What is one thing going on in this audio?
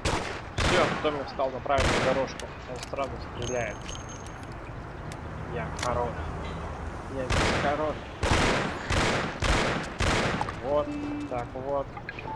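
A young man talks with animation through a headset microphone.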